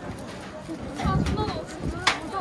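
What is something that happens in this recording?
Several people chatter nearby.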